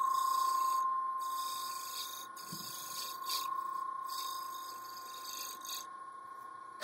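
A chisel scrapes spinning wood in rough bursts.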